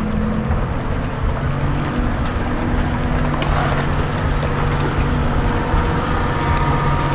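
Many boots tramp steadily along a dirt track.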